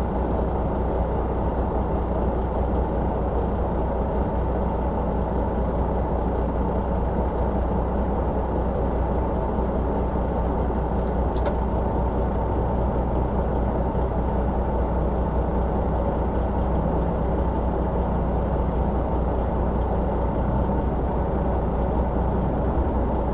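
A vehicle's engine idles close by with a steady low rumble.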